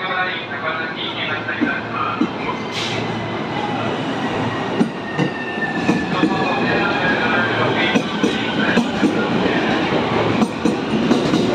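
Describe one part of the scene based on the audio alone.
A train's electric motor whines as it pulls away.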